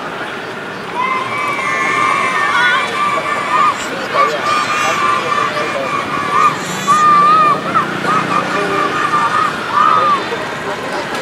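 Young children shout to each other outdoors.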